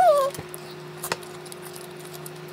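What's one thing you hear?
Chopsticks click against a plate.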